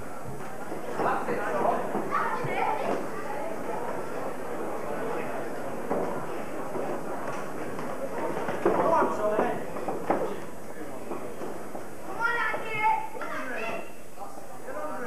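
Spectators at a boxing match shout and call out.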